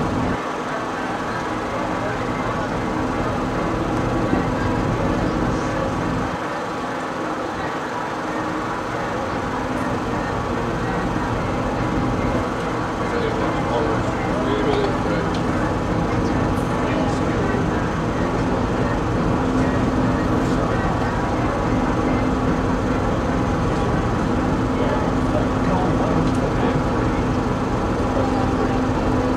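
Water splashes against a moving hull.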